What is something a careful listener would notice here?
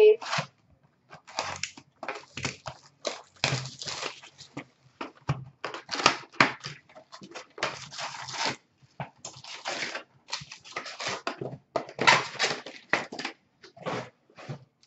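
Hands open cardboard boxes, rustling and scraping out foil packs of cards.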